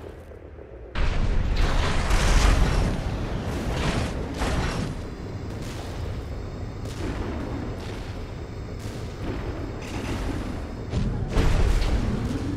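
Rocket thrusters roar as a robot boosts through the air.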